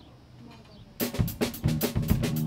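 A band starts playing loudly.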